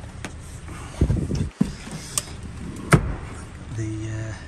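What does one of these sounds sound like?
A car seat latch clicks and the seat thumps as it is moved.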